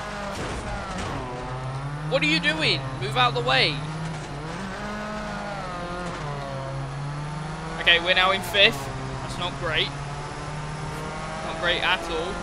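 A race car engine roars steadily, its pitch rising and dropping with gear changes.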